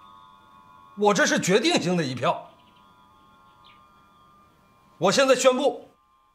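A man speaks firmly and clearly nearby.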